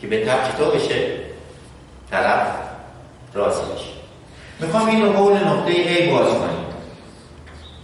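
A middle-aged man speaks loudly and with emphasis in an echoing room.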